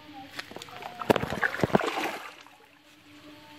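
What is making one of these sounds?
Water splashes in a shallow stream.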